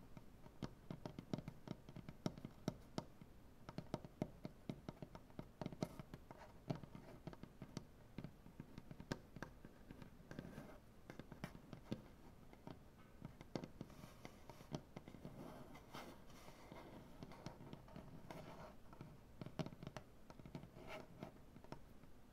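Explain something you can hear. Fingernails tap and click on a wooden surface.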